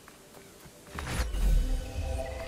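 A staff swishes through the air.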